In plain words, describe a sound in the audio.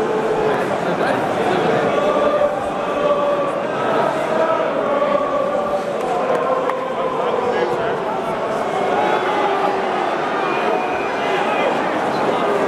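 A football crowd murmurs and shouts all around.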